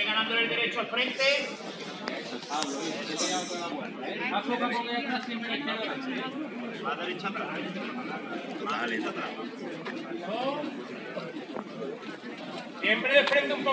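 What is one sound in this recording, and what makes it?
A crowd of young men talks and calls out nearby, outdoors.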